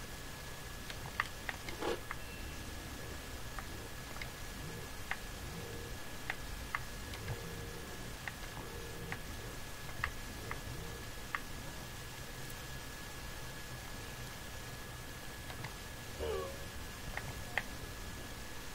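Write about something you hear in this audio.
Soft game footsteps tap in quick short bursts.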